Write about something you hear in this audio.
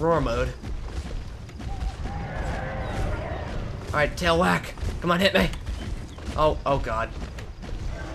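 Large creatures let out loud, wavering bellowing calls.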